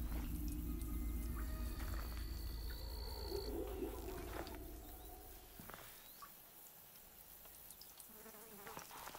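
Leaves and undergrowth rustle as a person moves close by.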